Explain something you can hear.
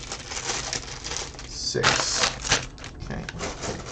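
Plastic bags crinkle and rustle as they are handled.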